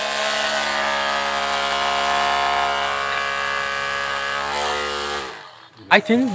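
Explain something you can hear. An electric drill whirs steadily as it bores into wood.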